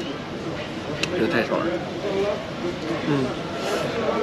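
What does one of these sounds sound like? A man bites into a crunchy sandwich.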